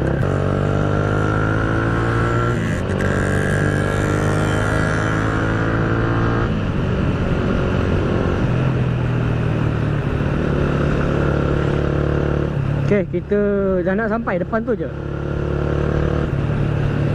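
A motorcycle engine hums steadily close by, rising and falling in pitch.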